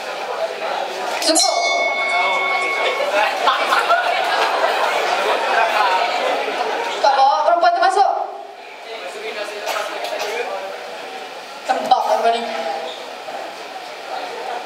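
A young man speaks into a microphone, heard through loudspeakers in a large echoing hall.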